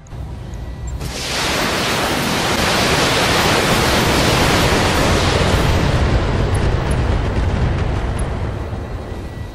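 A missile barrage roars in and explodes with a long rumbling blast.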